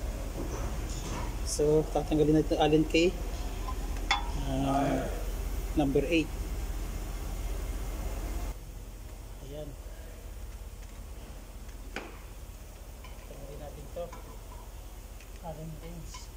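Metal parts clink as a hand handles a wheel hub.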